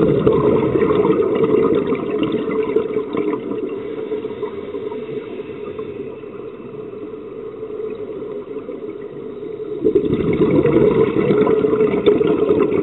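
Scuba air bubbles gurgle and crackle underwater, swelling in loud bursts.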